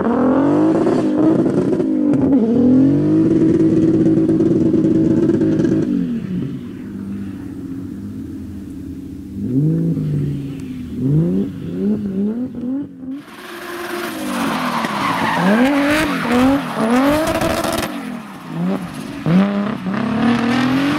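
A car engine revs hard and rises and falls in pitch.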